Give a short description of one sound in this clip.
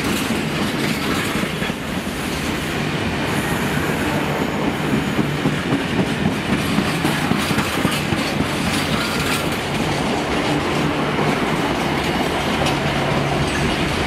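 A freight train rumbles past close by, its wheels clattering over the rail joints.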